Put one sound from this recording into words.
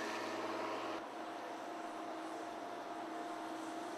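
Heavy trucks rumble slowly along a road.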